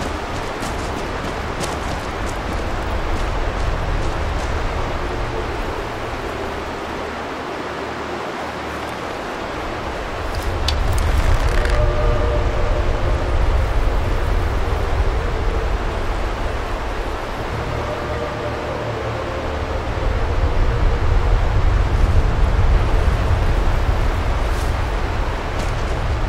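Strong wind blows steadily outdoors, gusting louder at times.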